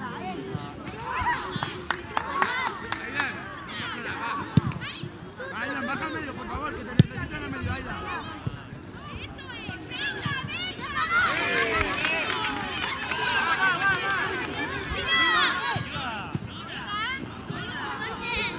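Children shout and call out to one another outdoors.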